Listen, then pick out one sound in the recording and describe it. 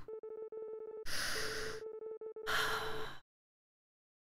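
A young woman laughs softly close to a microphone.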